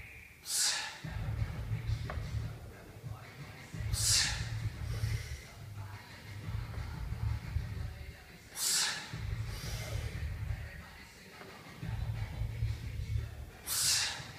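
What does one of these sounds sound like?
A man exhales sharply and forcefully with each lift.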